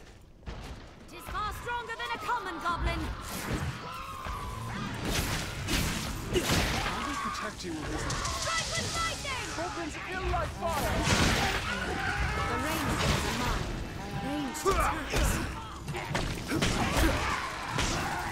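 Swords clash and strike in a noisy fight.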